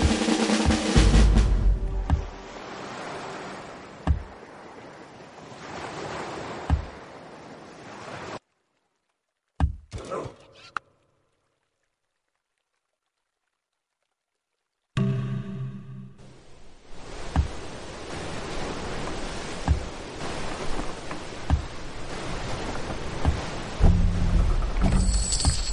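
Waves wash steadily against a sailing ship.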